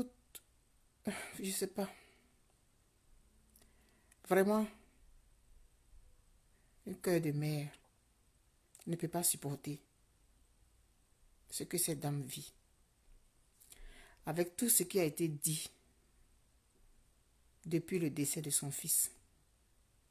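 A woman speaks calmly in short phrases, close to the microphone, with pauses between.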